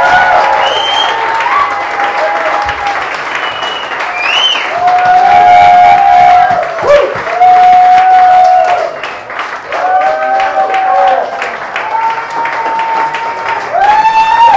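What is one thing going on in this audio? An audience claps along.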